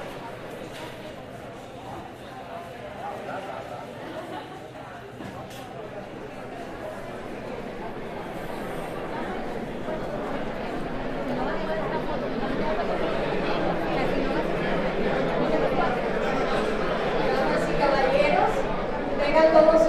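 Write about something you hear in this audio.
A crowd of people chatter in a large room.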